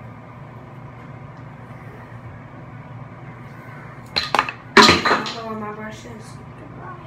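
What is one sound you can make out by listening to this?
A hair dryer hums steadily.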